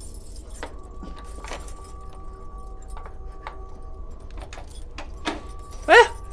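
Keys jingle and scrape in a metal lock.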